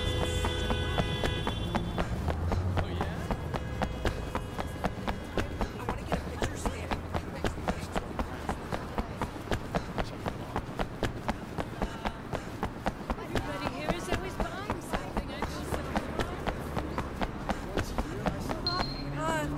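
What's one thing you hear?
Footsteps slap quickly on pavement as a man runs.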